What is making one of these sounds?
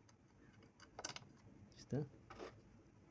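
Small metal parts click as a hand turns a machine mechanism.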